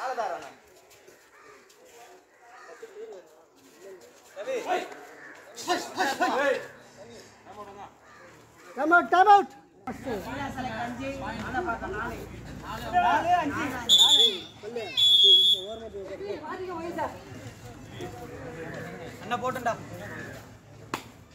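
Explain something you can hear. Young men shout and chant outdoors.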